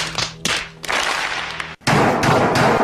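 A large crowd applauds.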